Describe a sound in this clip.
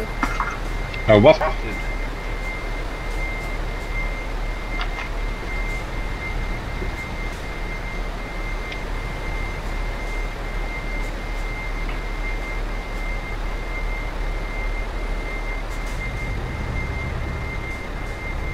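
A truck engine hums steadily at idle.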